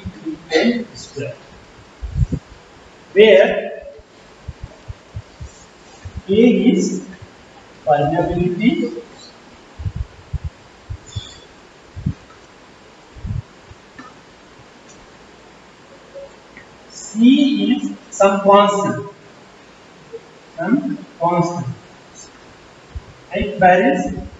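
A man speaks calmly in an echoing room, pausing often.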